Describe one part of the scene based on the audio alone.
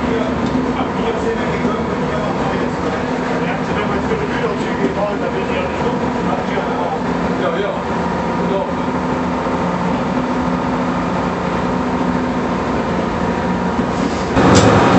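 Train wheels rattle and clack over the rails.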